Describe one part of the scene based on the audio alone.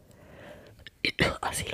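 A young woman makes soft mouth sounds close to a microphone.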